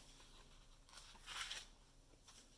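A book page rustles as it turns.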